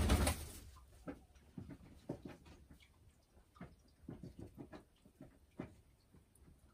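A hen clucks softly and repeatedly close by.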